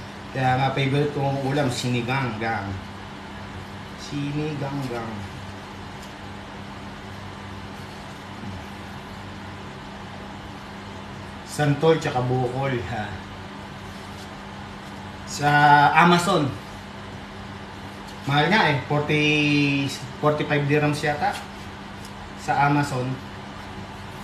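A young man talks casually and close by in bursts.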